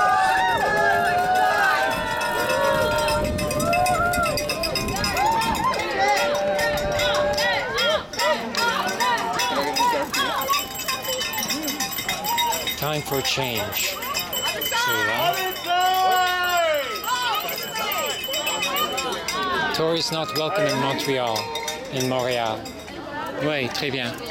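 A crowd of men and women chants and shouts outdoors.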